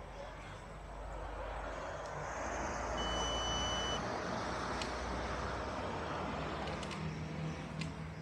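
Traffic hums on a nearby road.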